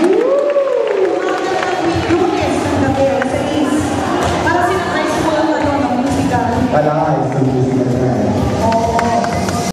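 A mixed choir sings together through microphones in a large reverberant space.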